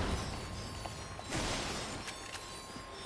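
Gunfire blasts in quick bursts.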